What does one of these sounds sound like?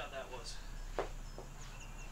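A golf club strikes a ball with a sharp smack.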